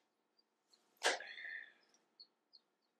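A toilet handle clunks as it is pressed.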